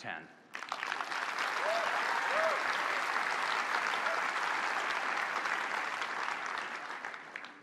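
A large audience applauds loudly in a big hall.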